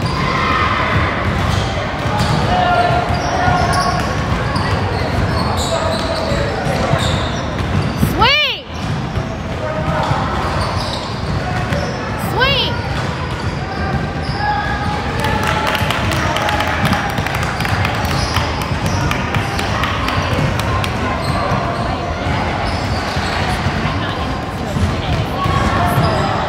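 Young players call out to each other in a large echoing gym.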